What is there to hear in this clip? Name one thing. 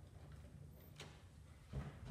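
A door clicks open.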